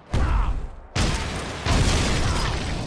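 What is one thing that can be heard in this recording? A car explodes with a loud roaring blast.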